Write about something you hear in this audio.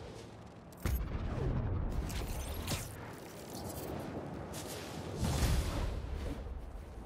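Air rushes past in loud swooping whooshes.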